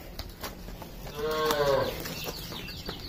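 A bull bellows loudly.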